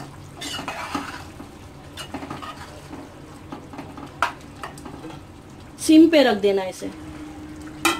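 A metal spoon scrapes and stirs inside a pot.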